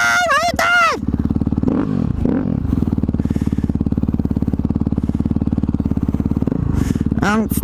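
A dirt bike engine idles with a rapid putter.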